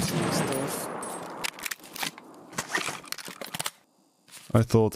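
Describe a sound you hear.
Gunshots crack and echo sharply.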